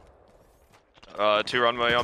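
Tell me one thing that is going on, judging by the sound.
A young man talks excitedly into a microphone.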